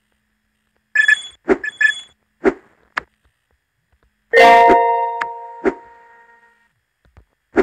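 A bright chime rings as stars are collected.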